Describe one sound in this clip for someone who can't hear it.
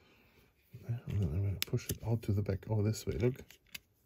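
A plastic pry tool clicks and scrapes against a small metal part.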